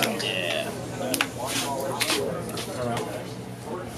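Cards slap down onto a table.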